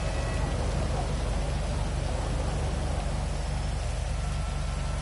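A motorcycle engine idles with a low, steady putter.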